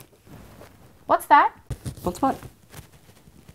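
A young woman speaks calmly up close.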